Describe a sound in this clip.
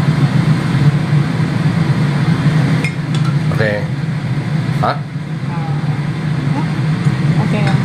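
Metal tongs scrape and tap against a pan.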